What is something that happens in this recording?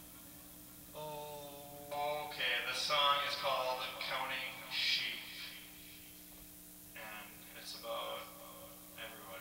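A man plays an electric guitar through an amplifier.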